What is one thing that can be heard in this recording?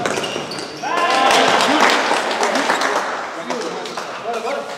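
A crowd cheers loudly in an echoing hall.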